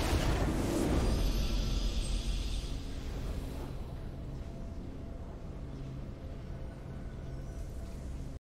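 A triumphant fanfare swells and rings out.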